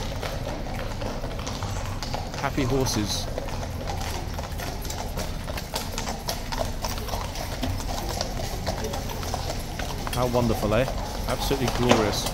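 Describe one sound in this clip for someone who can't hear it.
Horse hooves clop on paving stones outdoors.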